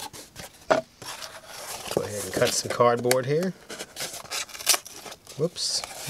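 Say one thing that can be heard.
A knife cuts and scrapes through cardboard.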